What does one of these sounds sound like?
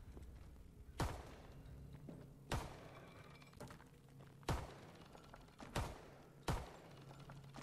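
Pistol shots crack one at a time.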